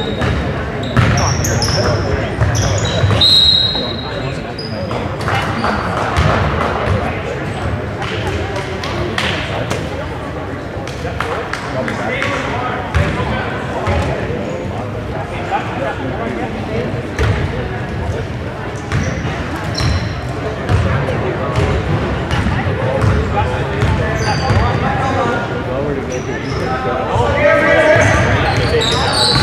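Young players call out to each other across the court.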